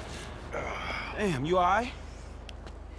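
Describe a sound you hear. A young man asks with concern, close by.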